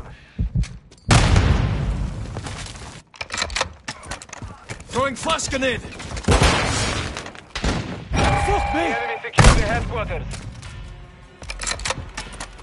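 Rapid gunfire cracks in bursts.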